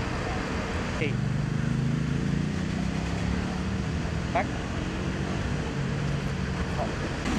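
A dog pants rapidly.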